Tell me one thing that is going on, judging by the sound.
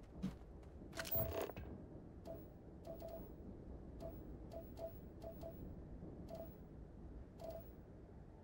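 A scanner beeps softly at uneven intervals.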